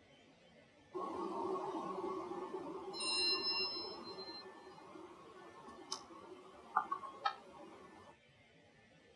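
A newspaper rustles as its pages are handled and turned.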